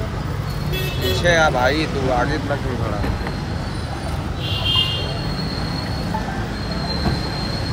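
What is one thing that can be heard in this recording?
A low rumble of street traffic runs throughout.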